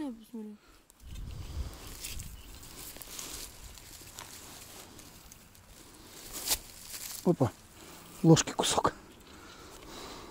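Hands scrape and dig through loose soil and dry leaves.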